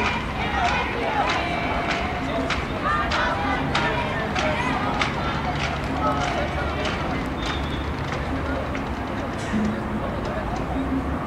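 Young men call out and shout to each other outdoors.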